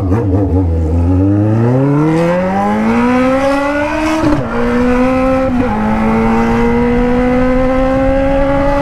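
An inline-four sport motorcycle accelerates hard through the gears, its exhaust howling higher.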